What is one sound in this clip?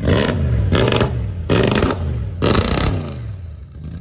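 A pickup truck engine revs loudly in sharp bursts.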